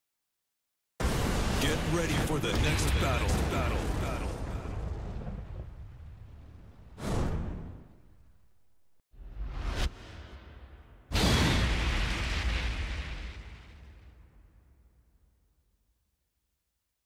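A loud fiery explosion roars and slowly fades.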